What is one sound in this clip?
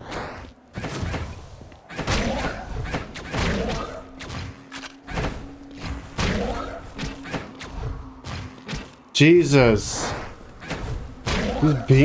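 Electronic blade slashes whoosh in quick bursts.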